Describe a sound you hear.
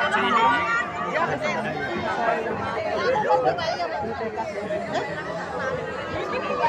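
A crowd of women and men talk and call out over one another close by.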